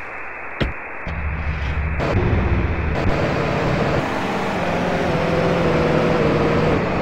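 A car engine starts and idles, then revs as the car drives off.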